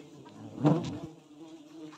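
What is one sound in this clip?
A wooden tray knocks against a wooden stump.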